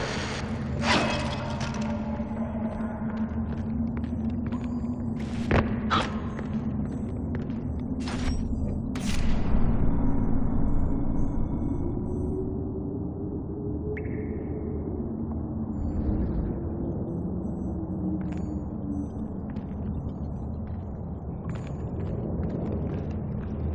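Footsteps scuff on rocky ground.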